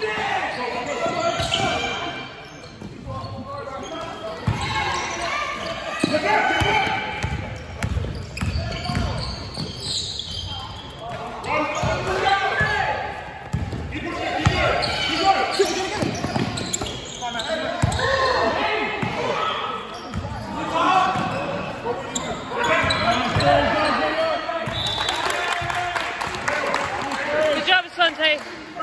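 A basketball is dribbled and bounces on a wooden court in a large echoing hall.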